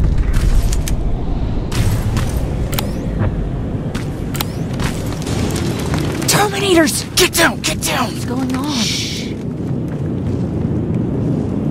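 Flames crackle and roar nearby.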